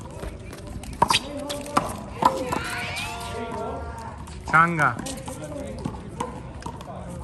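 A rubber ball smacks sharply against a wall and the ground.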